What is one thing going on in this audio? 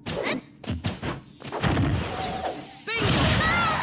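Hits land with sharp smacks and bursts during a fight.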